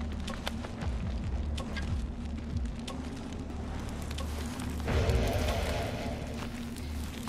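Footsteps crunch on snowy ground.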